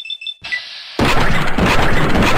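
A gun fires loudly in rapid bursts.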